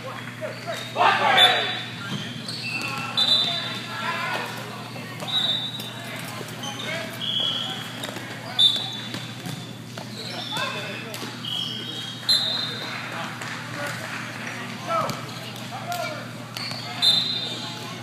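A volleyball thuds against hands and arms.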